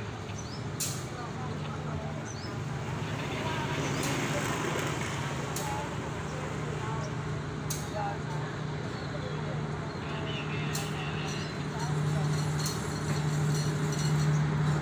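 A diesel locomotive hauling a train approaches, its engine droning louder.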